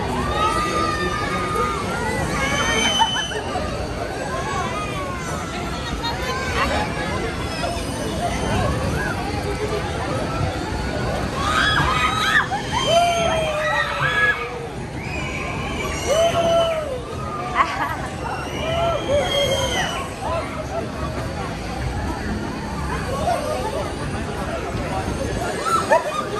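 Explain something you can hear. Young riders scream and shriek with excitement on a swinging fairground ride.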